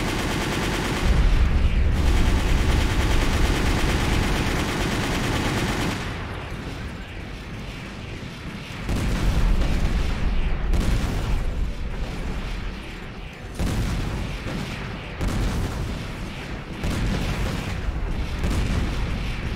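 Jet thrusters roar steadily.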